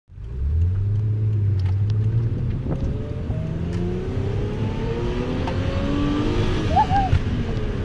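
A car engine hums from inside the car and rises in pitch as the car speeds up.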